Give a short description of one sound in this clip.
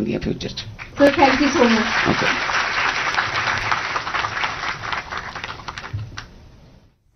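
Applause fills a room.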